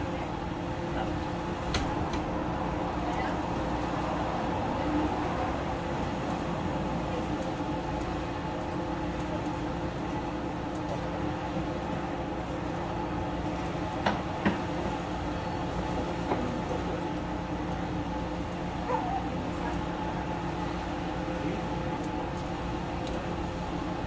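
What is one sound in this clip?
A steady hum of a ventilation fan runs throughout.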